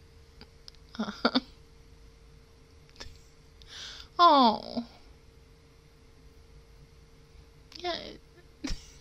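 A young woman speaks and laughs softly into a close microphone, in short bursts.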